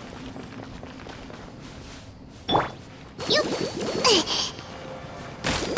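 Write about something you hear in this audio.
Footsteps patter quickly across stone.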